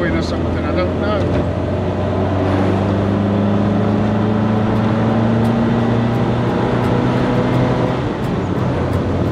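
A car engine drones steadily and rises in pitch as it speeds up.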